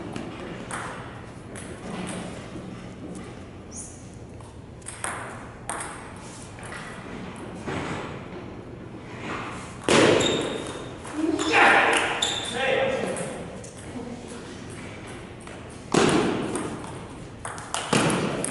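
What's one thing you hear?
A ping-pong ball clicks back and forth on paddles and a table, echoing in a large hall.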